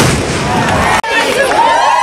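A crowd cheers and ululates loudly outdoors.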